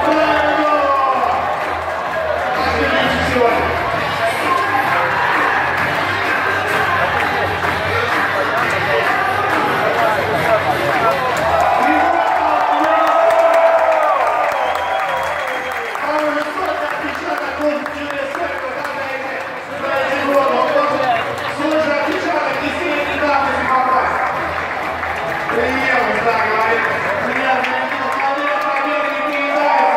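A stadium crowd cheers loudly, heard through a television.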